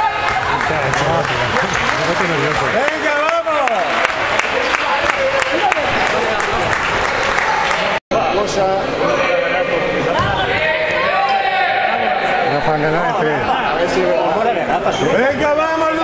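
A crowd of spectators chatters and calls out nearby in a large echoing hall.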